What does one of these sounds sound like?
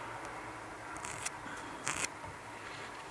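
A pencil scratches a line on wood.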